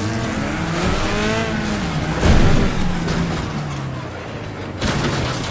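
A racing engine roars and revs up and down.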